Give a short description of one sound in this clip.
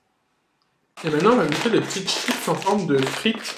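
A crisp packet crinkles as a young man tears it open.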